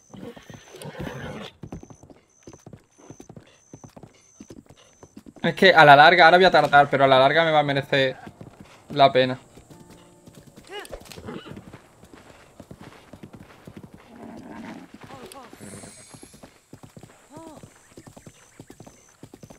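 Horse hooves gallop steadily over soft ground.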